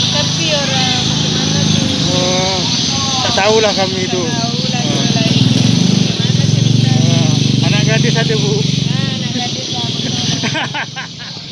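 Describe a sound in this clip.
A middle-aged woman talks nearby.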